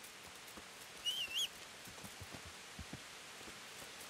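Footsteps tread on a dirt path outdoors.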